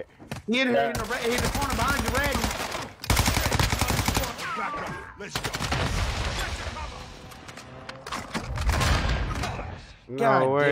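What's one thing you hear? Gunfire bursts out in quick rattling volleys.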